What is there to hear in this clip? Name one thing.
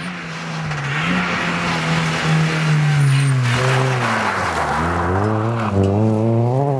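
Gravel sprays and rattles under tyres.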